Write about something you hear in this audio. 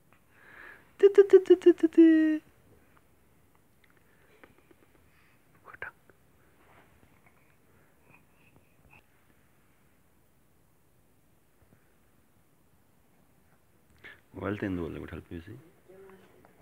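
A baby coos and squeals up close.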